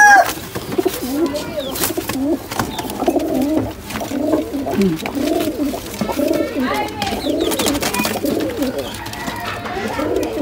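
Domestic pigeons coo in a low, throaty way.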